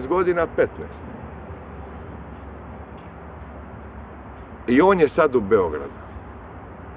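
A young man speaks calmly and closely into a microphone, in short bursts with long pauses.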